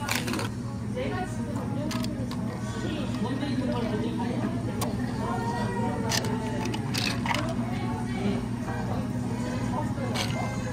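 Coffee pours and trickles over ice.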